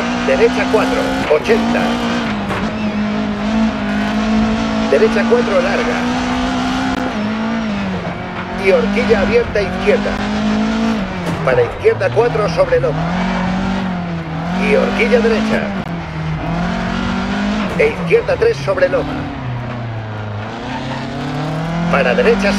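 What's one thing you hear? Tyres squeal on asphalt through the bends.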